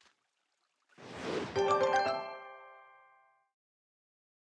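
A bright magical chime rings out with a whoosh.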